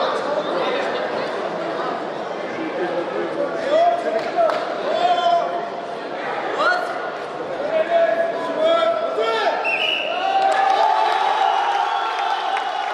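A crowd of men and women chatters and calls out in a large echoing hall.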